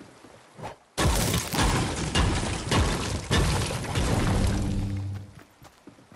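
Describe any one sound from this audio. A pickaxe strikes stone in a video game.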